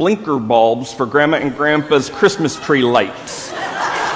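A man speaks slowly and solemnly through a microphone in a large echoing hall.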